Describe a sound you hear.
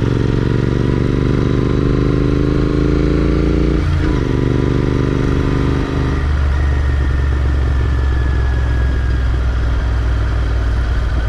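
A motorcycle engine rumbles steadily up close, its pitch rising and dropping as it shifts gears.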